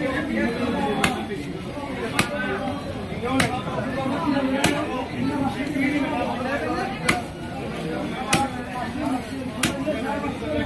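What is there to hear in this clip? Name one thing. A cleaver chops through fish on a wooden block with sharp, regular thuds.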